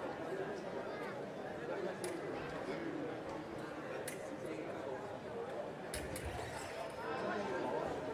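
Fencers' feet tap and squeak on the floor.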